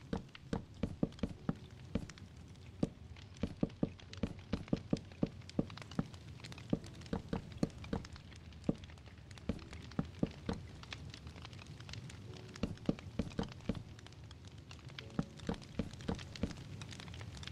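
Wooden blocks are placed with sharp knocks.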